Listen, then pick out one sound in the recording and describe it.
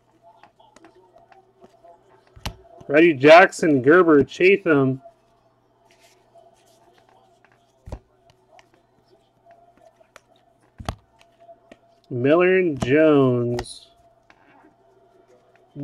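Trading cards rustle and slide as they are flipped through by hand.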